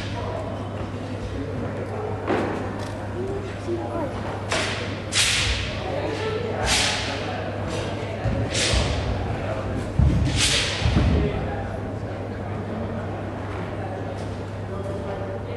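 Feet shuffle and step softly on a padded floor.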